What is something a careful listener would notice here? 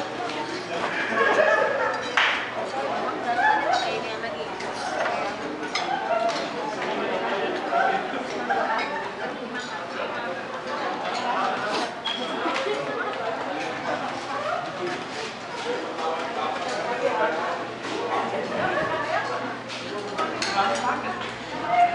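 Many men and women chatter throughout in a busy room.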